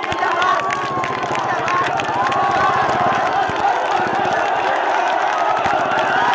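Many people clap in a fast rhythm.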